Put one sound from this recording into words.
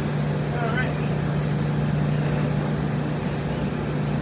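A man loads laundry into a front-loading washer.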